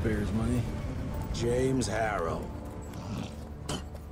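A man speaks mockingly.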